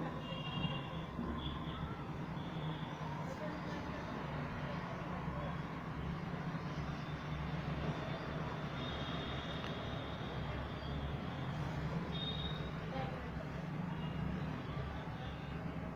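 Birds chirp faintly high overhead.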